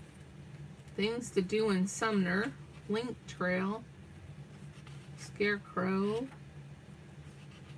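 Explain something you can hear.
Magazine pages rustle as they are turned.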